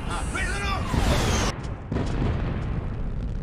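A plane crashes into a mountainside with a heavy, booming impact.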